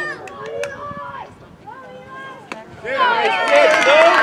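A metal bat cracks against a baseball.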